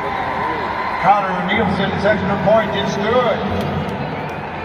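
Nearby spectators shout and cheer loudly.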